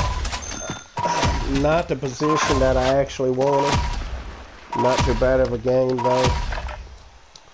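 Short electronic chimes ring out as points are tallied.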